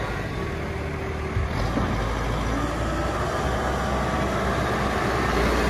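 Tyres crunch on gravel.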